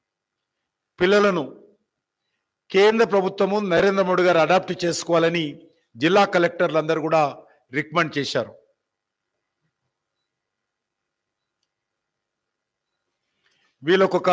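A middle-aged man speaks into a microphone with animation, in bursts with pauses.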